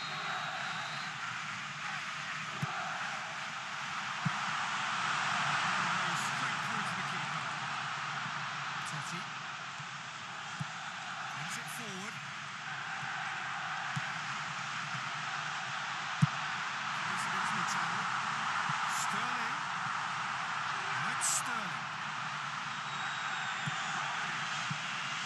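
A stadium crowd roars and chants steadily.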